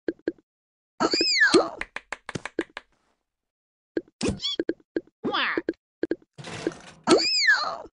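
Cartoonish chirping sounds sweep up and down.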